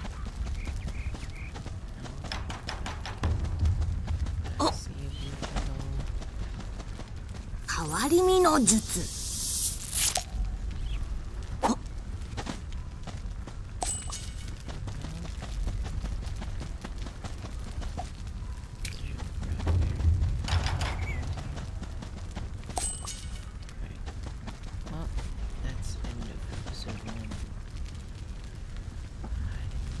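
Quick footsteps patter through grass.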